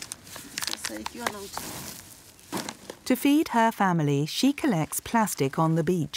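Litter crunches and scrapes as it is picked up from the sand.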